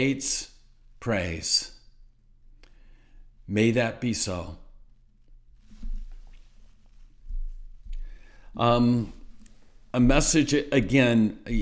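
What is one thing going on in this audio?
An older man speaks calmly and close to the microphone, with pauses.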